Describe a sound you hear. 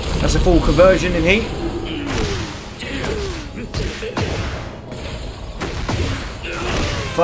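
Punches and kicks land with sharp thuds in a fighting game.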